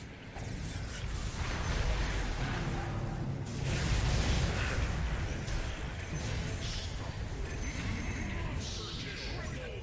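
Spell effects crash and boom in a hectic game battle.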